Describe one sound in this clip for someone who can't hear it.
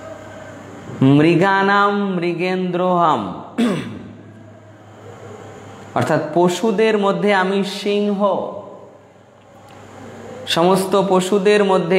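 A man sings a slow, drawn-out chant close to a microphone, in phrases with pauses between them.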